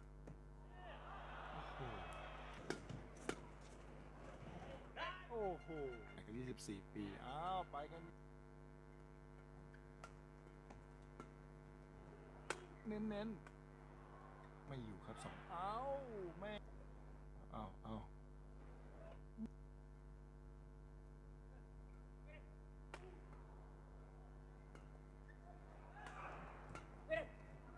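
A shuttlecock is struck sharply with rackets back and forth.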